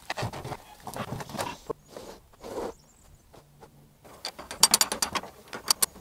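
Metal knocks and clanks as a bar is worked under a shed.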